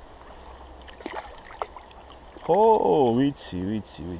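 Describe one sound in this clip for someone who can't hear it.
A fish splashes at the water's surface.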